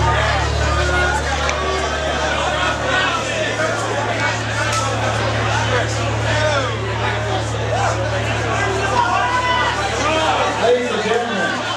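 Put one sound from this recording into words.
A man screams into a microphone.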